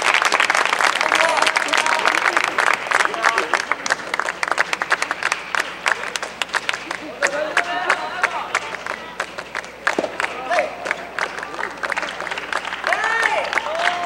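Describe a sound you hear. A crowd claps rapidly in a large echoing hall.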